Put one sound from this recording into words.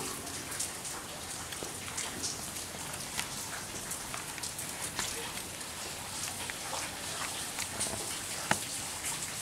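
Steady rain falls outdoors, with drops pattering and splashing.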